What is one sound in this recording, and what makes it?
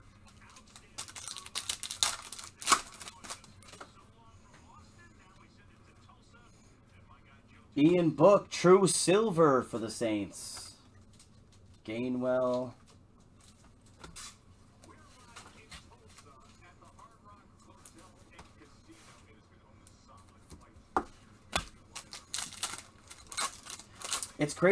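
Foil wrapping crinkles and tears as hands open a pack.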